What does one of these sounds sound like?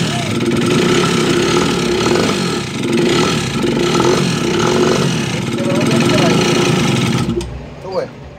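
A small scooter engine idles with a rattling hum close by.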